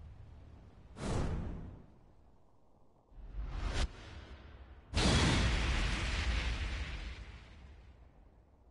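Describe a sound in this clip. A deep whoosh and boom sweep through.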